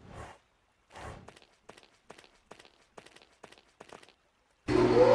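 Footsteps tread lightly on the ground.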